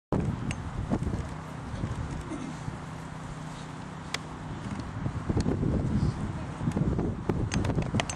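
A young man speaks with emotion through a microphone outdoors.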